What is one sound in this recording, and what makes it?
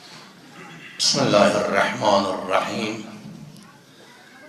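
An older man speaks with emphasis into a microphone.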